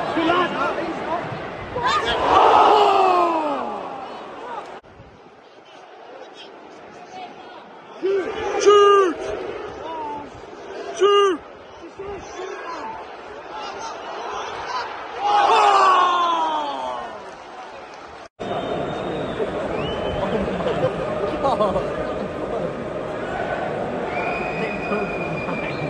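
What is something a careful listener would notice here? A large stadium crowd chants and cheers loudly.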